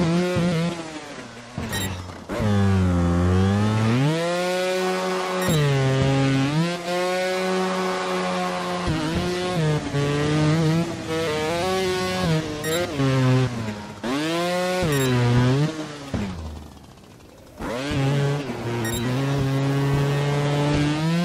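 A motorbike engine revs up and down, rising and falling in pitch.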